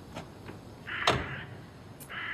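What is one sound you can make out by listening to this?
A van door slams shut.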